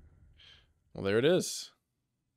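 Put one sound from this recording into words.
A young man exclaims briefly near a headset microphone.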